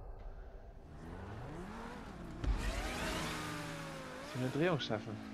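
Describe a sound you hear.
A sports car engine roars and revs up, rising in pitch.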